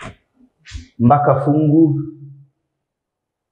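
A young man speaks briefly and close by.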